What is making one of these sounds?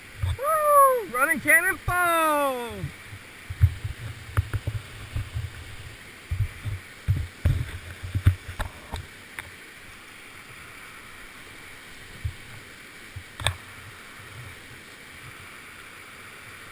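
A kayak paddle splashes and knocks in the water.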